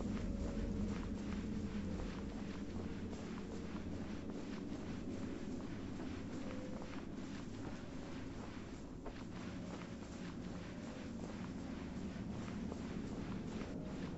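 Sand hisses steadily under a sliding body.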